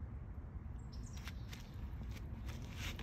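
Footsteps crunch softly on dry dirt and leaves.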